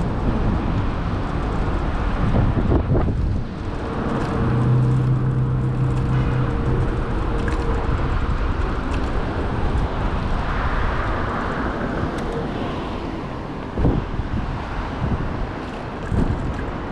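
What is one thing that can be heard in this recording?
Bicycle tyres hum on a paved path.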